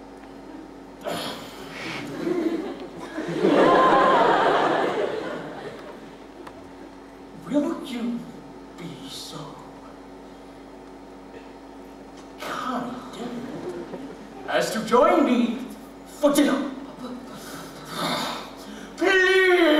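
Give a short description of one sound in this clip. A man speaks loudly and theatrically.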